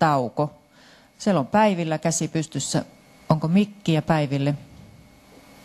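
A woman speaks into a microphone with animation, heard through loudspeakers in a large room.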